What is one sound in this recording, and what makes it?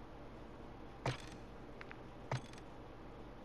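A game menu gives short clicks as options are selected.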